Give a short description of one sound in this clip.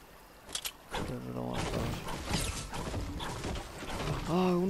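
A pickaxe strikes wood.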